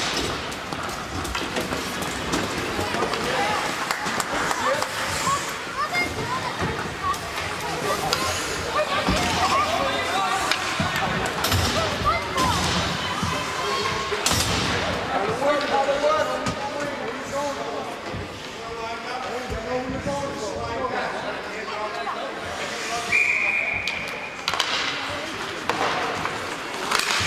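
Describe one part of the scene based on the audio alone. Spectators chatter and call out in an echoing rink.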